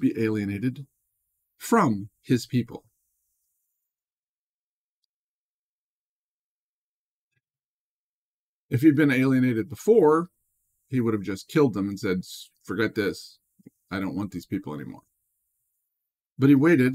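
A middle-aged man speaks calmly and close to a microphone, with long pauses.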